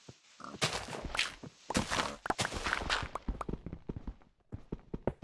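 A shovel digs repeatedly into loose dirt and gravel with crunching scrapes.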